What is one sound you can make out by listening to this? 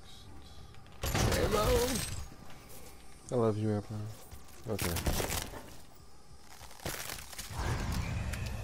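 Bones and flesh crunch as a monster is torn apart.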